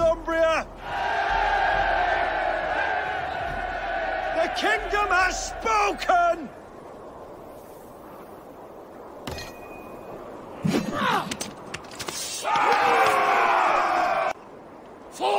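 A crowd of men cheers and roars together.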